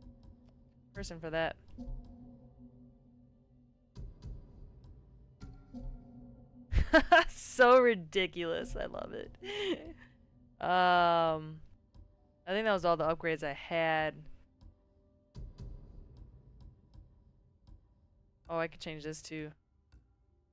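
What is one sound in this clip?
A young woman talks with animation into a microphone, close by.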